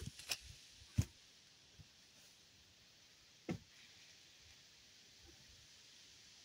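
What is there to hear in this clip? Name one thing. Footsteps in rubber boots tread through grass close by.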